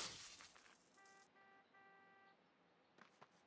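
A short electronic chime plays in a steady repeated pattern.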